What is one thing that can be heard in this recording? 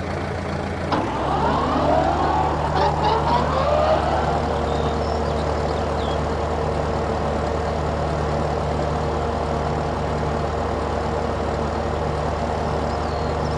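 A mower blade whirs through grass.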